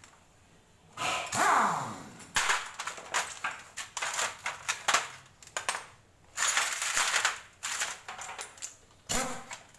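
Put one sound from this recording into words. Metal tools and parts clink and rattle close by.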